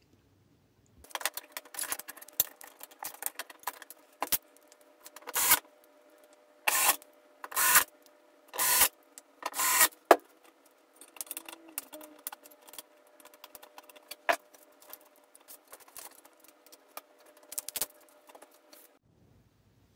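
Cables and small metal parts click and rattle as they are handled.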